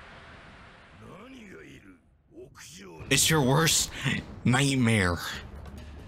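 A young man exclaims and talks excitedly close to a microphone.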